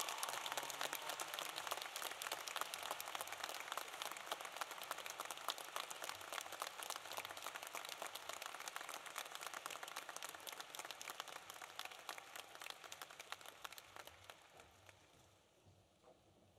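A large crowd applauds in a big echoing hall, then the applause fades.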